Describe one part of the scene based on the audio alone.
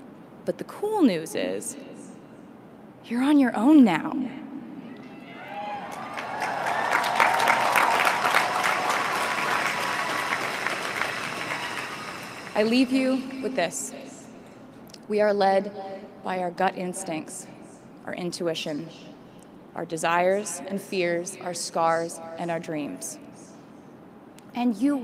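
A young woman speaks calmly into a microphone in a large open space.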